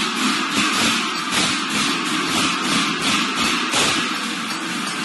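Small drums are tapped by hand.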